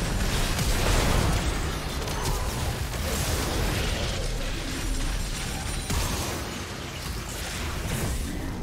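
Spell effects crackle and blast in a game fight.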